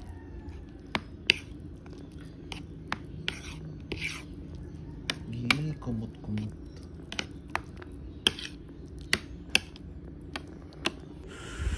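A spoon scrapes and clinks against a plate of rice.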